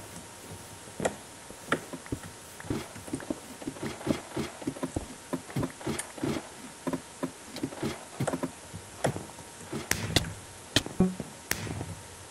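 Footsteps tap quickly on wooden planks.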